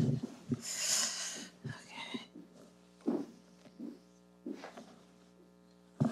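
A chair creaks as a woman sits down.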